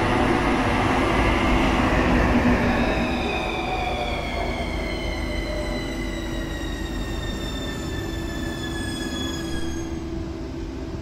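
A train's motors whine and fall in pitch as it slows to a stop.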